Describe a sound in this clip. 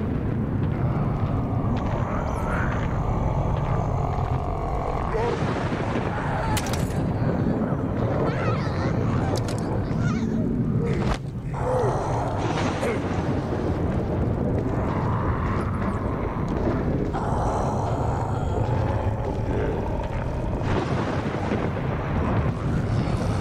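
Footsteps shuffle quietly on a hard, gritty ground.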